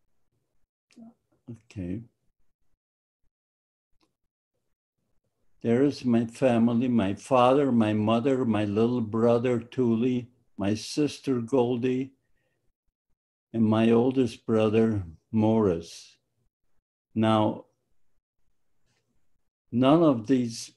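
An elderly man speaks calmly through a microphone on an online call.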